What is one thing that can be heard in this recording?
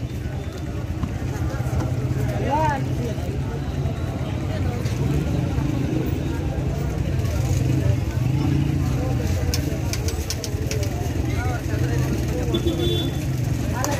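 A busy street market murmurs with voices and traffic outdoors.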